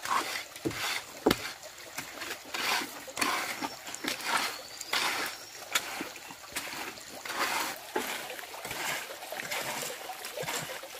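A trowel scrapes and smooths wet cement in repeated strokes.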